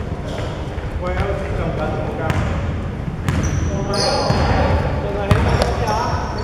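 Young men call out to each other in an echoing hall.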